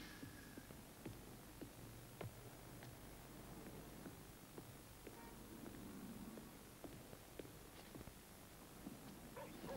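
A violin plays softly in a large echoing hall.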